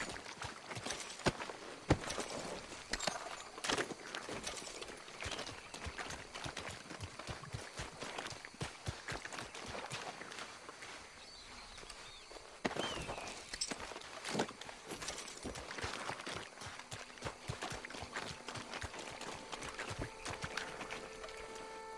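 Footsteps splash through shallow water and mud.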